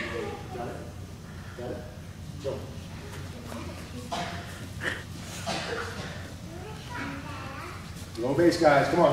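A man speaks to children nearby.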